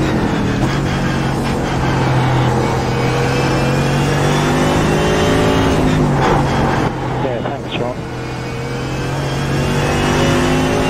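A racing car engine roars at high revs, dropping in pitch as it shifts down and then climbing again.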